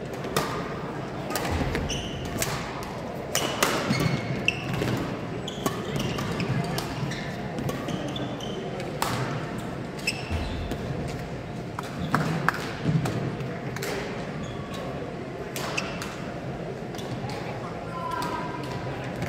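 Badminton rackets smack a shuttlecock back and forth in an echoing hall.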